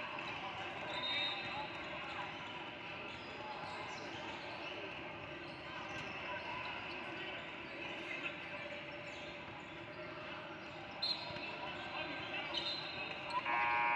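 A referee blows sharp whistle blasts.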